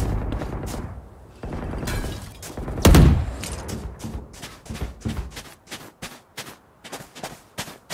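Footsteps patter quickly on a hard surface.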